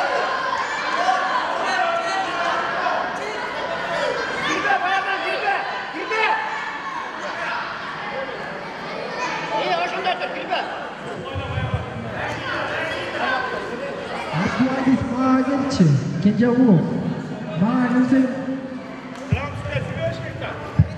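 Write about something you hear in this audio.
A crowd of children and adults chatter in a large echoing hall.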